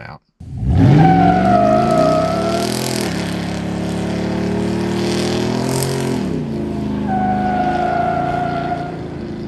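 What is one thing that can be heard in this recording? Tyres squeal loudly as they spin on pavement.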